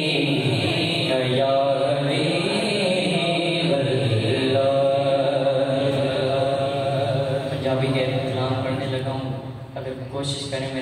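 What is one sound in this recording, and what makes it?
A man sings or recites melodiously into a microphone, heard through a loudspeaker.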